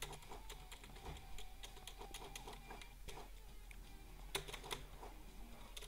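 Quick light footsteps patter steadily.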